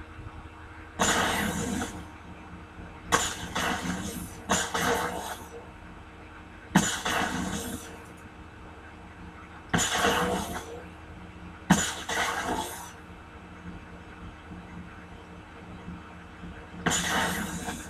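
Electric blasts crackle and buzz from a television speaker.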